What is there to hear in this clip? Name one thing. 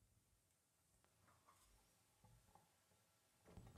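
A man taps and scrapes small metal objects, making soft clinks.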